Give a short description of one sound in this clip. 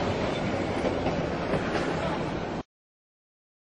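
A train rumbles heavily over the tracks.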